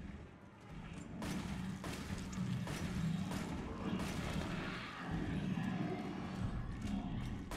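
A gun fires in rapid bursts.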